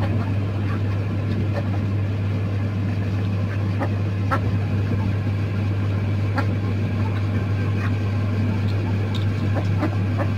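Ducks and chickens peck rapidly at food.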